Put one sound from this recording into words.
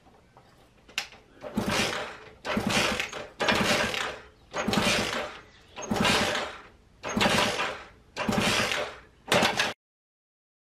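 A small motorcycle engine is kicked over again and again, sputtering in rough bursts without catching.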